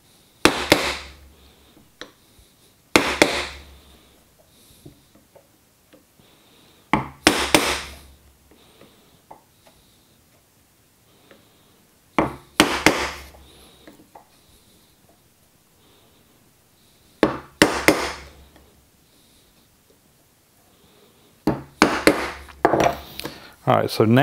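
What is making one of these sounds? A wooden mallet strikes a chisel with sharp knocks in short bursts.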